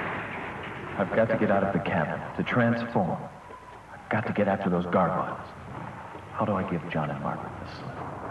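A young man speaks tensely up close.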